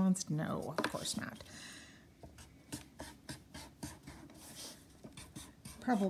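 A felt marker squeaks and scratches on paper.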